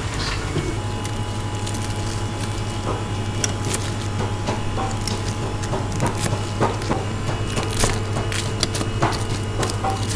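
A knife chops through crispy fried meat on a cutting board.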